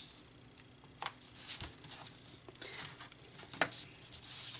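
Small taps and clicks sound as paper pieces are pressed down.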